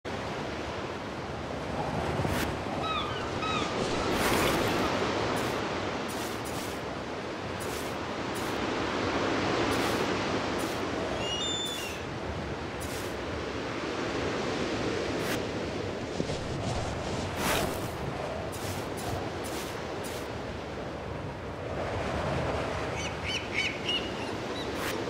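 Wind blows steadily in a snowstorm.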